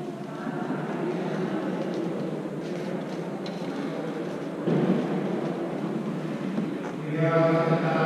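Men and women chat quietly in a large, echoing hall.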